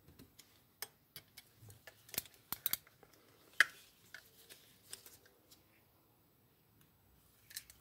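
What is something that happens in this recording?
A screwdriver clicks and scrapes against small metal parts.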